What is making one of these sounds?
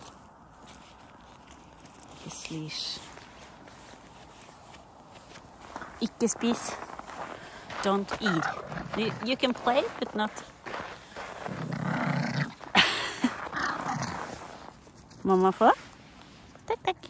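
A small dog runs, paws pattering on crunchy snow.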